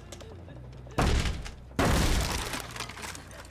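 A heavy wooden door bangs open.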